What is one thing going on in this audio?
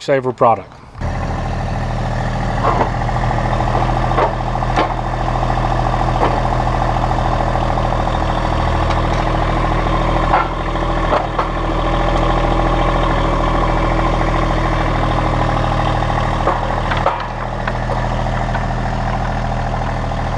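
A tractor engine idles steadily nearby.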